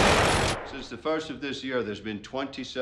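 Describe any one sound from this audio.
A man speaks in a firm voice indoors.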